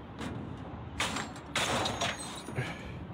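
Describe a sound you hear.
A metal padlock rattles.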